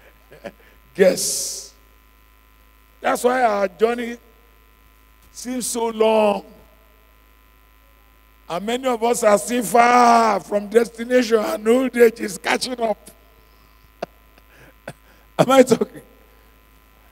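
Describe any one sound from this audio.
A man preaches with animation through a microphone, in bursts with pauses.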